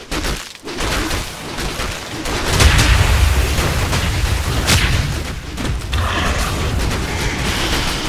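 Magical blasts and impacts crash and whoosh in a fierce battle.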